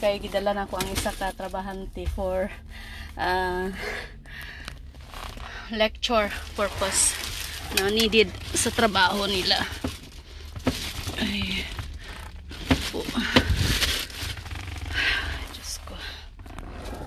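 A middle-aged woman talks close to the phone inside a car.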